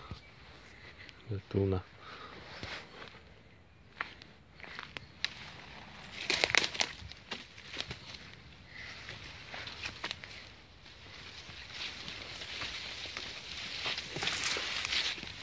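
Leaves and twigs rustle and crackle close by as someone pushes through undergrowth.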